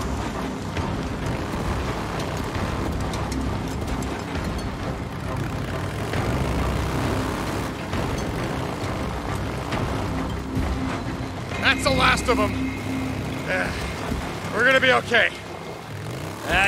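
Tyres crunch over a gravel track.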